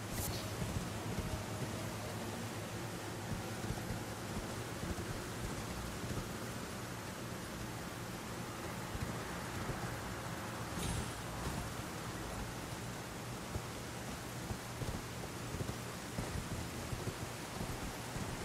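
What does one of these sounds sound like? A horse gallops, its hooves thudding on the ground.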